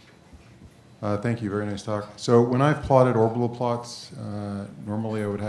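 A middle-aged man speaks calmly through a microphone in a large room.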